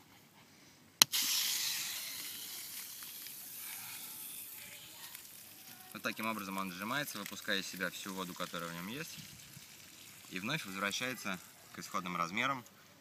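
Water sprays from a hose nozzle onto grass.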